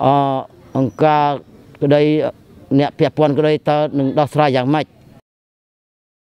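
A man speaks slowly and earnestly, close by.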